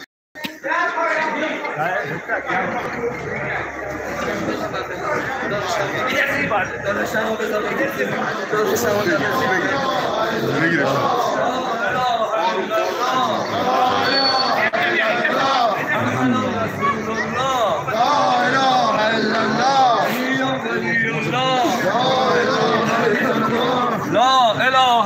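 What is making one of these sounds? A crowd of men chants and sings loudly together, close by.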